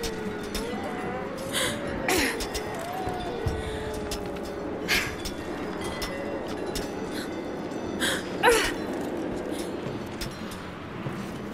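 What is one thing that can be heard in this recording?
Climbing axes strike rock with sharp clinks.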